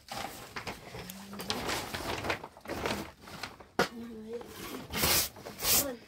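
A plastic sack rustles and crinkles.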